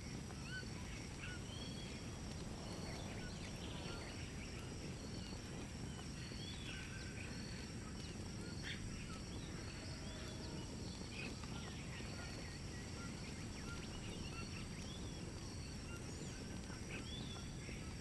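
A torch fire crackles softly.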